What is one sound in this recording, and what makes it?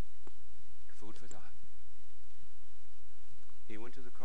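An older man speaks calmly in short phrases through a clip-on microphone.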